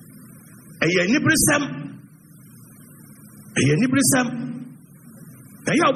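A young man speaks calmly and close to the microphone, in short bursts.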